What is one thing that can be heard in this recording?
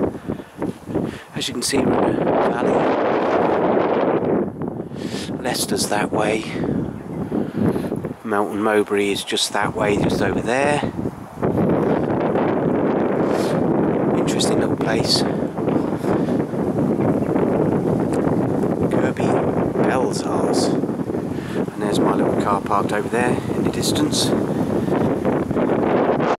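Wind blusters loudly across the microphone outdoors.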